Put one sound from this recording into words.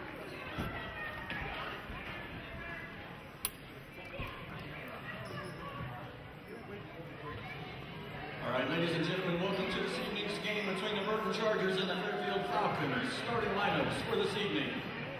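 A crowd chatters in a large echoing hall.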